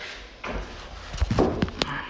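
A hand taps on a wooden door.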